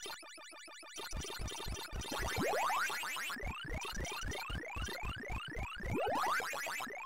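Quick electronic chomping blips repeat in a fast rhythm.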